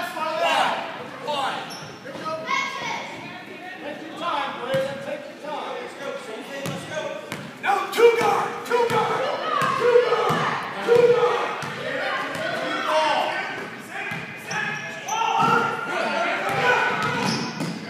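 Spectators and players shout and call out in an echoing hall.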